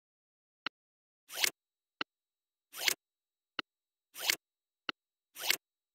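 A computer program plays short, sharp clicks at an even pace.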